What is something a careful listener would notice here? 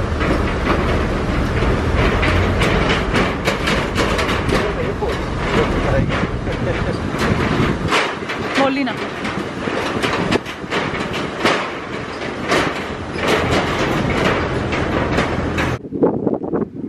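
A vehicle rumbles across a metal bridge.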